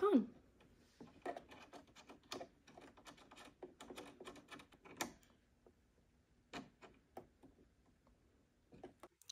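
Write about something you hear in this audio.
Soft clicks and taps come from fingers handling a sewing machine.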